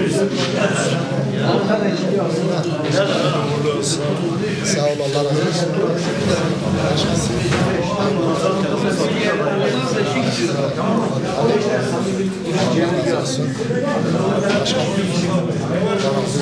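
Men kiss each other on the cheeks in greeting.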